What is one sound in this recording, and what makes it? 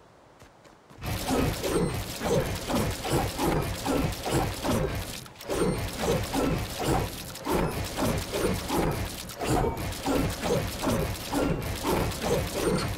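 Wooden building pieces clatter into place in quick succession.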